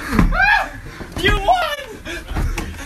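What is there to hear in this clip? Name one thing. A young man yells loudly nearby.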